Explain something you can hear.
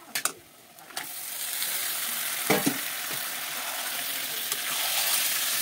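Hot oil sizzles loudly in a pan.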